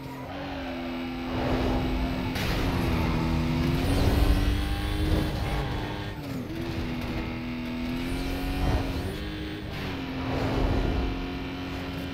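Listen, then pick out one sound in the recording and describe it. Wind rushes past a fast car in loud whooshes.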